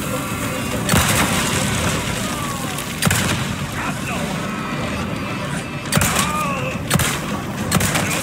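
A handgun fires sharp shots.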